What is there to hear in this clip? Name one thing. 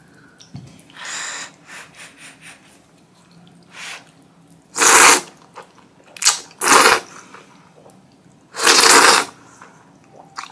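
A young woman slurps noodles loudly, close to the microphone.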